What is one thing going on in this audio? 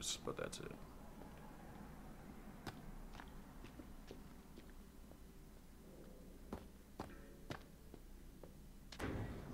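Footsteps sound slowly.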